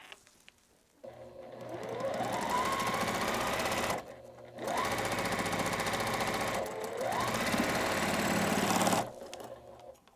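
A sewing machine whirs as it stitches, speeding up and stopping in bursts.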